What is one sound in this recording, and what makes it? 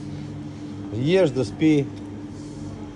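An elderly man speaks briefly and loudly nearby.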